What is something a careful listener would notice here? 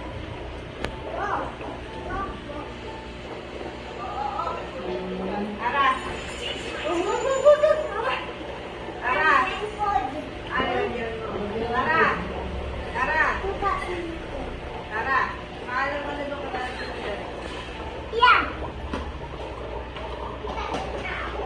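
An aquarium filter hums steadily.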